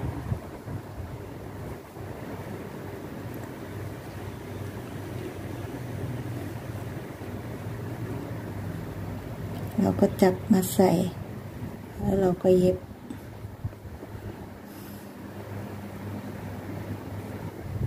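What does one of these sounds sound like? Hands softly rustle and handle crocheted yarn.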